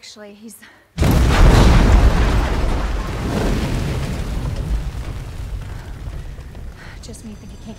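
A loud explosion booms and rumbles into a roaring fire.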